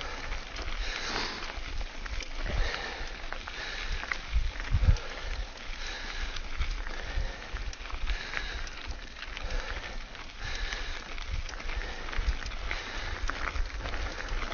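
Wind rumbles against a nearby microphone.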